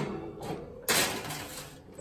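A metal baking tray scrapes onto an oven rack.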